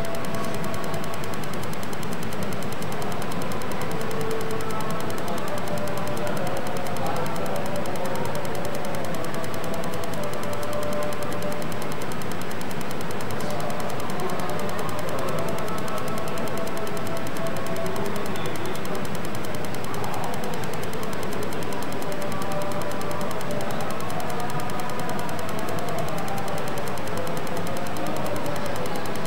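A man speaks into a microphone through loudspeakers, reciting with feeling in a reverberant space.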